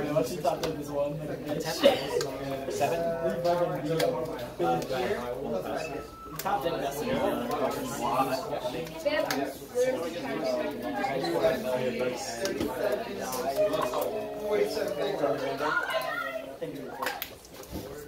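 Cards slap softly onto a table.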